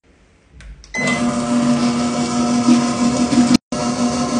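An electric stand mixer whirs steadily as it turns.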